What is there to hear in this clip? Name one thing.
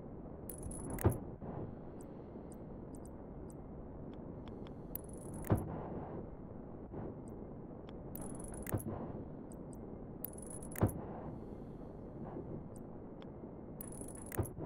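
Blocks snap into place with heavy, echoing thuds.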